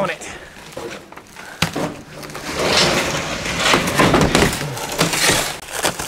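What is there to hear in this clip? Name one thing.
Wooden crate panels knock and clatter.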